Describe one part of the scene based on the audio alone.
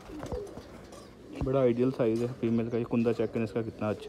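A pigeon's wing feathers rustle.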